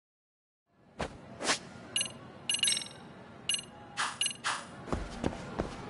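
Menu beeps and chimes sound in quick succession.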